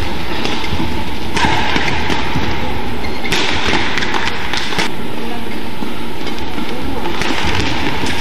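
A badminton racket strikes a shuttlecock back and forth.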